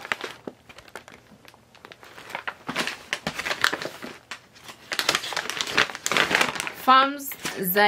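A paper bag crinkles and rustles close by.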